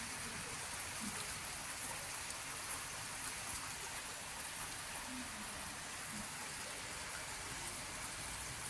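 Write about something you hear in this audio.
Heavy rain pours steadily outdoors, splashing on pavement and cars.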